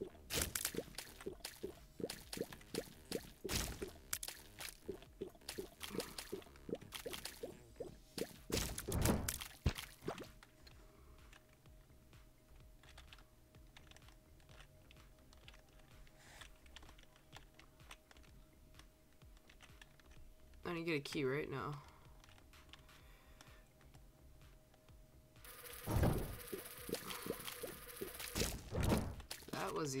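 Soft wet shots pop and splat in quick bursts.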